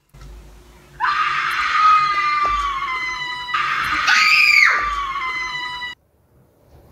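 A young girl shrieks in a long, high, held cry.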